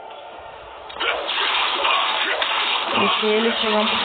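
Sword slashes whoosh and clang in quick bursts.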